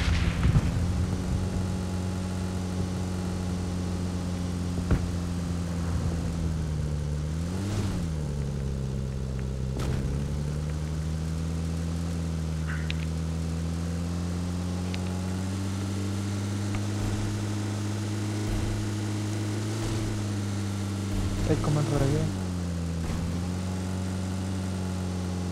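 A vehicle engine hums steadily, rising and falling in pitch as it drives over bumpy ground.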